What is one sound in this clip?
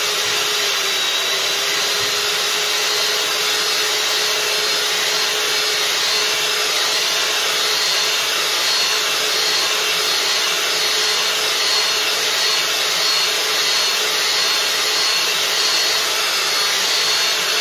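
An electric hand mixer whirs steadily, beating a liquid in a bowl.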